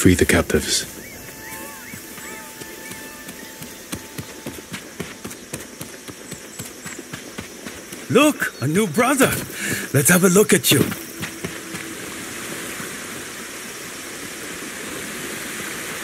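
Footsteps patter quickly over dirt and stone.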